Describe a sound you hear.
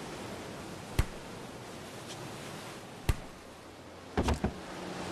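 A ball bounces with sharp thumps.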